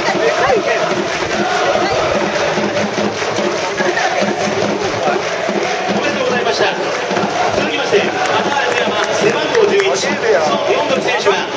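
A large stadium crowd cheers and chants all around, outdoors.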